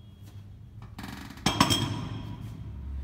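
A barbell's weight plates clank as it is set down.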